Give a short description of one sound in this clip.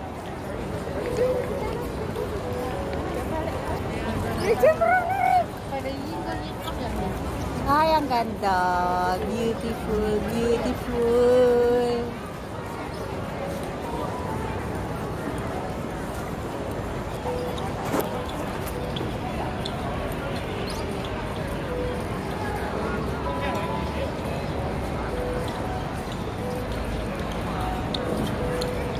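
A crowd murmurs in the open air.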